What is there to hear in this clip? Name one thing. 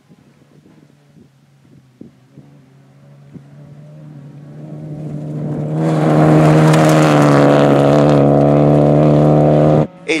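A rally car engine roars closer at high revs and speeds past.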